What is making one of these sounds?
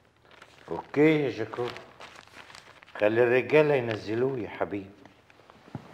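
A man speaks calmly in a low voice nearby.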